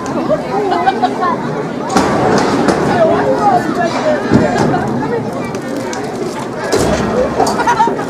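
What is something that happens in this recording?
A crowd of spectators chatters and calls out close by.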